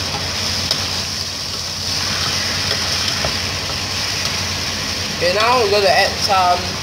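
A spatula scrapes and stirs meat in a metal pot.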